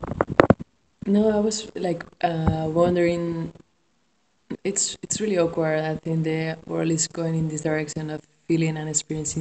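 A middle-aged woman sings close to the microphone.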